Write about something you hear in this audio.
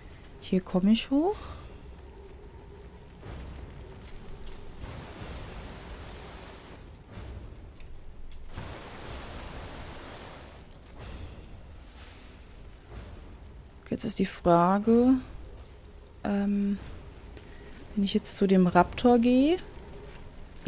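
A young woman speaks animatedly into a microphone, close by.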